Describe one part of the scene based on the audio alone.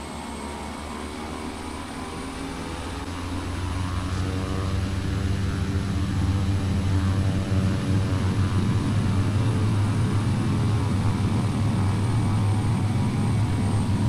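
A propeller aircraft's engines hum steadily and grow louder.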